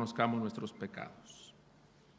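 A man's voice rings out briefly through a microphone in a large, echoing room.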